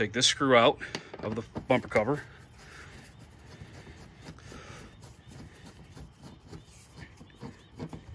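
A screwdriver turns a screw in metal with faint creaks.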